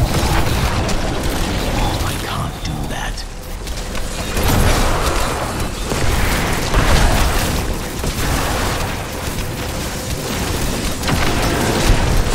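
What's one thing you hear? Spell blasts explode with deep booms.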